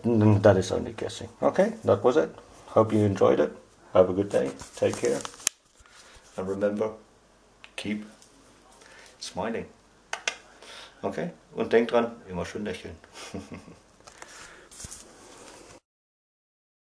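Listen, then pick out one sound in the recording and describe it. A man speaks casually close to the microphone.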